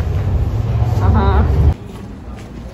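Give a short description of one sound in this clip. A young woman calls out cheerfully nearby.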